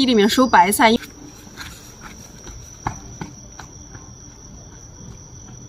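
Footsteps scuff on a paved path.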